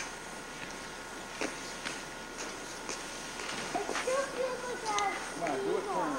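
Skis swish and crunch through snow close by.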